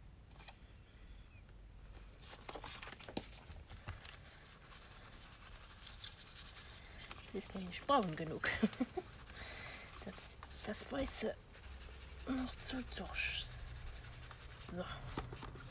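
Paper slides and rustles on a table.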